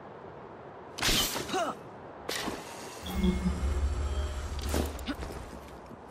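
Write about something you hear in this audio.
Heavy thuds and scrapes sound as a climber grabs onto stone.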